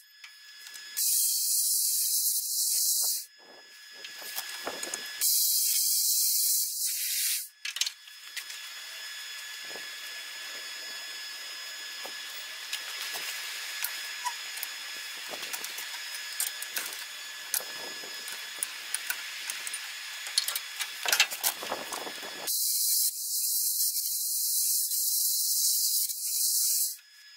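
A cutting torch hisses loudly in steady bursts.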